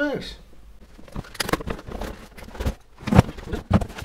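A cardboard box is opened with scraping and rustling.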